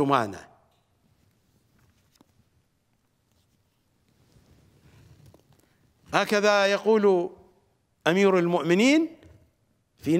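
A middle-aged man speaks slowly and expressively into a microphone, with long pauses.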